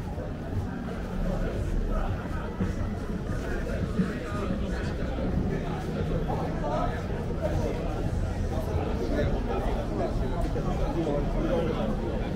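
A crowd of people chatter nearby on a busy street.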